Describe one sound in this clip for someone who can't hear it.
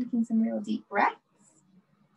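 A woman speaks briefly and calmly over an online call.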